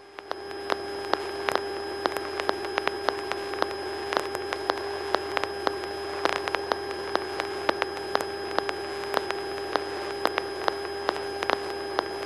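A small plane's engine drones steadily inside the cabin.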